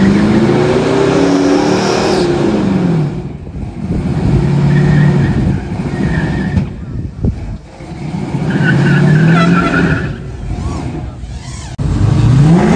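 A pickup truck's engine revs hard during a burnout.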